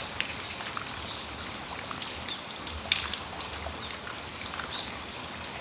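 Raindrops patter and drip onto a metal awning outdoors.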